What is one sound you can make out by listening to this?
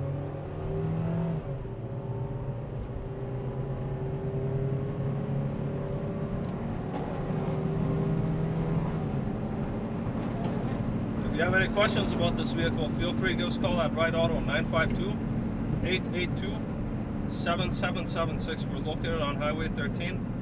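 A compact car's four-cylinder engine hums from inside while driving.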